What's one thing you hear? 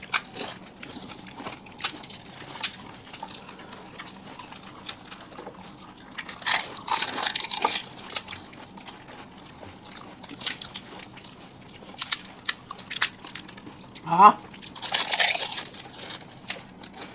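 Wet chewing and slurping sounds come close to a microphone.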